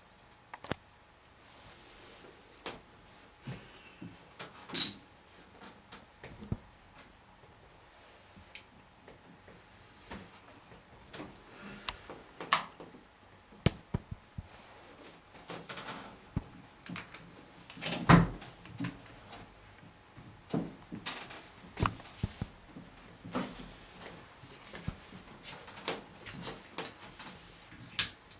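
Poker chips click and clatter on a table.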